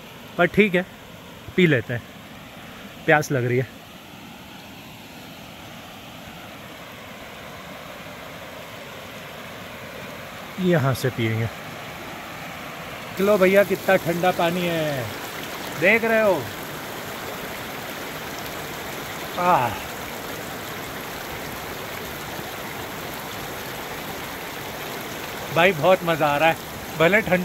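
A stream of water rushes steadily over rocks.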